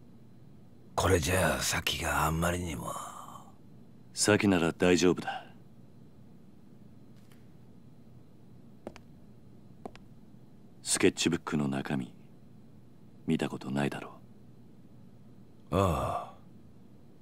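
An older man speaks in a gruff, worried voice.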